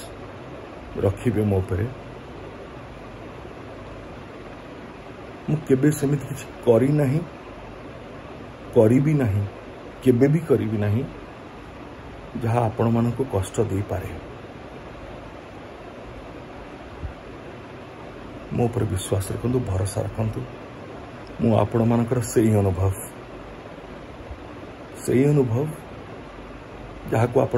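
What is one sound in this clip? A man speaks close to a microphone in short, calm bursts with pauses between them.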